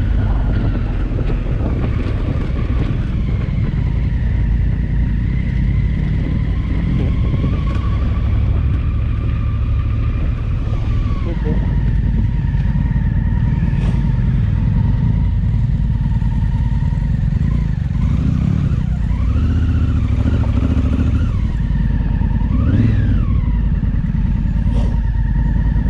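Tyres crunch over gravel and stones.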